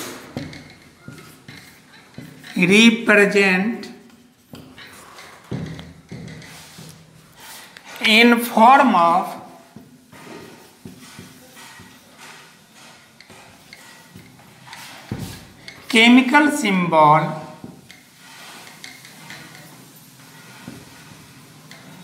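A marker squeaks and scratches on a board.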